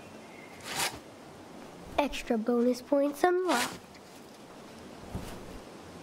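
A shovel scrapes across snow.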